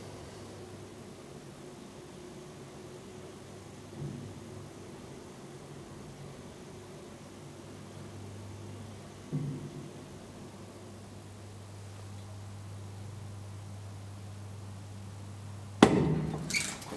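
An elevator motor hums steadily while the car arrives.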